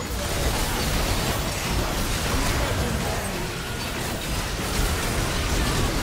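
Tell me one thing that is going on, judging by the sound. Game spell effects crackle and burst in a fast fight.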